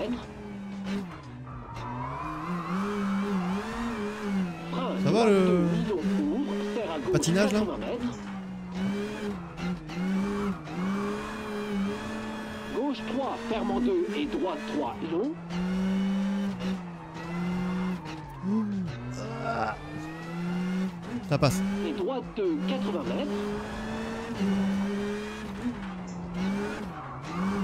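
A car engine revs high and shifts gears steadily throughout.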